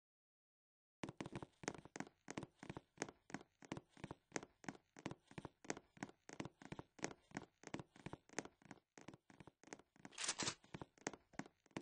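Footsteps tap quickly in a steady rhythm.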